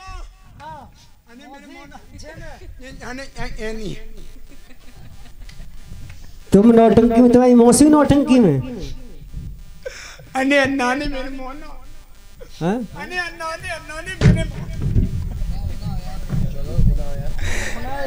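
A young man speaks with animation through a loudspeaker.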